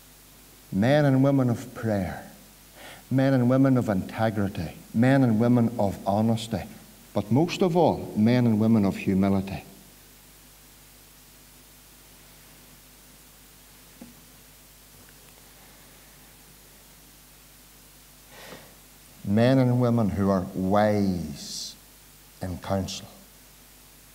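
A middle-aged man preaches forcefully through a microphone, pausing at times.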